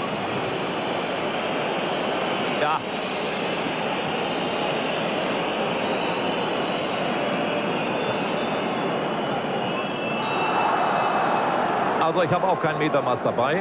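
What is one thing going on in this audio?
A large stadium crowd roars and chants steadily outdoors.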